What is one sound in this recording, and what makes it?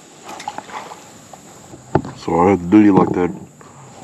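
A fishing lure plops into the water.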